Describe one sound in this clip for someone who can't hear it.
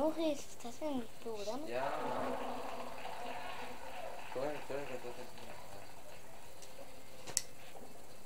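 A bowling ball rolls down a lane from a television.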